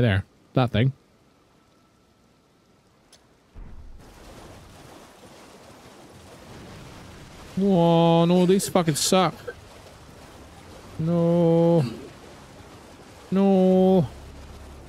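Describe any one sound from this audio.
A man speaks close to a microphone with animation.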